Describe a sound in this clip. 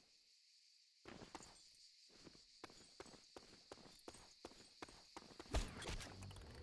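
Footsteps tap quickly on hard ground.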